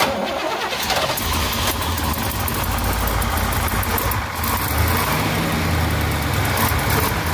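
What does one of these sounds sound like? A V8 car engine idles with a deep, steady rumble close by.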